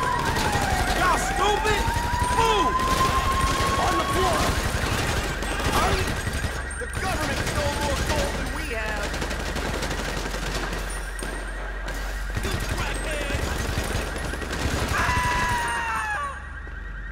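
Rapid gunshots crack and echo in a large enclosed space.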